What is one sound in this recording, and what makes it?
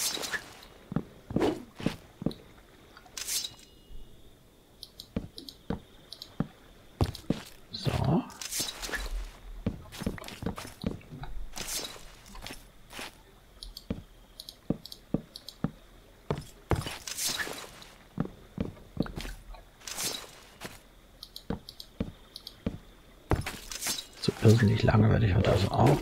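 Wooden blocks crack and break with dull knocks.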